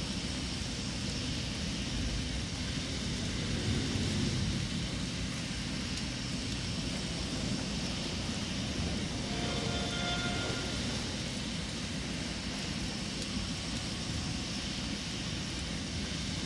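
Steam hisses steadily from a vent.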